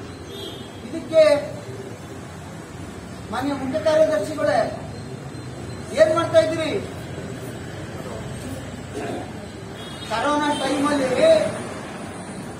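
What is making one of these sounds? An elderly man speaks forcefully into a nearby microphone, in short bursts with pauses.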